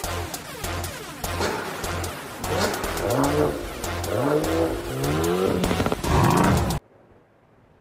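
A car engine revs loudly and roars.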